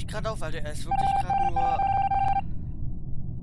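A video game plays a short electronic tone.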